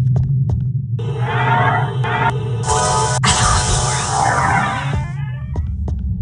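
Magical sparkles chime and shimmer.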